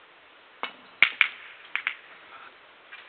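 Billiard balls knock together on the table.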